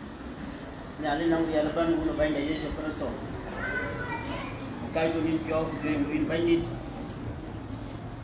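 A man speaks calmly into a microphone over loudspeakers in an echoing hall.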